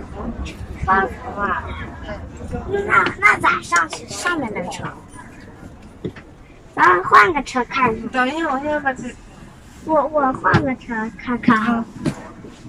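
A young child talks close by.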